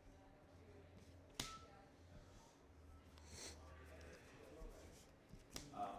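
Cards shuffle and riffle in hands.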